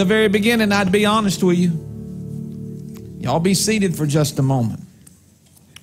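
A man sings into a microphone, heard over loudspeakers.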